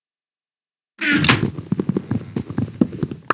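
A wooden chest lid thumps shut.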